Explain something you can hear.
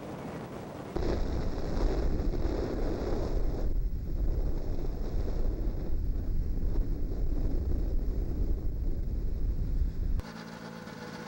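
Wind buffets the microphone with a low rumble.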